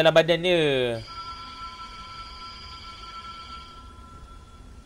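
A laser beam hums steadily with a high tone.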